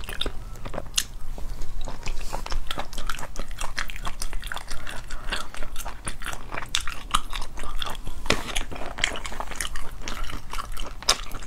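A young woman chews and smacks wet food close to the microphone.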